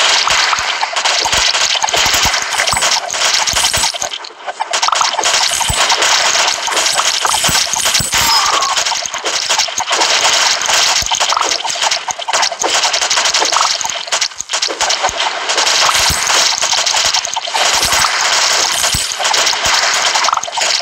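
Rapid game shots and impact effects crackle and pop without a break.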